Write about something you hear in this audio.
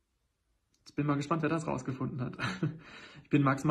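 A young man talks with animation, close to a phone microphone.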